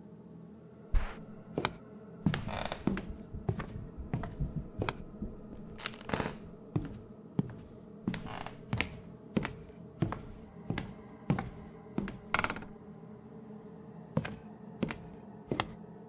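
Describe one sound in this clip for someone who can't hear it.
Footsteps walk steadily across a wooden floor indoors.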